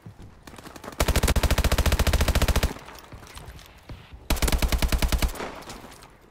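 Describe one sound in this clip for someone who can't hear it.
A rapid-fire gun shoots in quick bursts.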